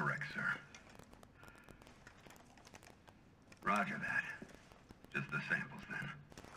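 A man speaks calmly over a crackly radio, muffled as if through a mask, in short bursts.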